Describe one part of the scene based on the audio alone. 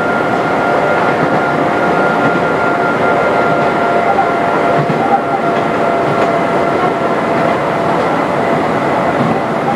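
An electric train motor whines with a steady hum.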